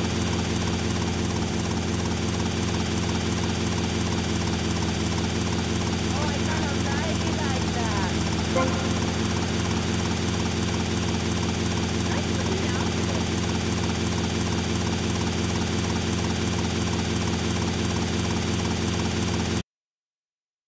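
A helicopter's engine and rotor drone steadily.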